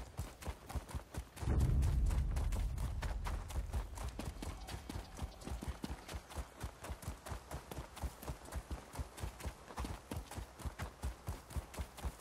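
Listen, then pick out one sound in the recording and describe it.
Hooves clop quickly and steadily on hard ground.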